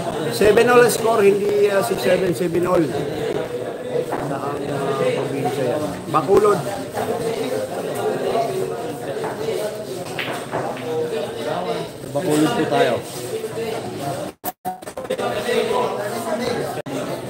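A crowd of young men chatters and talks nearby.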